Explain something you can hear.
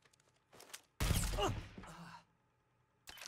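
A pistol fires a loud shot.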